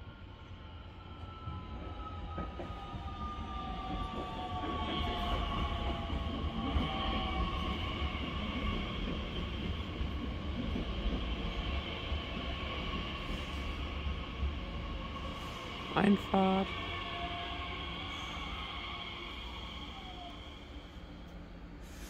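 Train brakes squeal with a high, steady whine.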